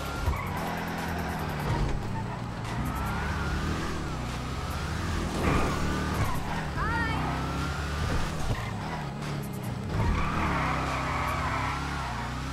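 Tyres screech as a car slides through a turn.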